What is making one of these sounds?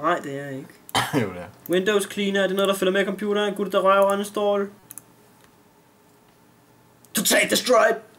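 Keys clatter on a laptop keyboard.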